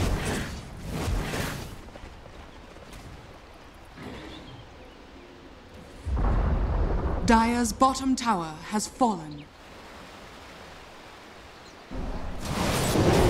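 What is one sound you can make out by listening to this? Magical spell effects whoosh and crackle in bursts.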